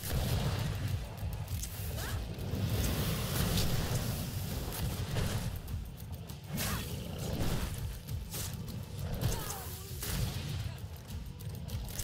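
Heavy low rumbling booms throughout.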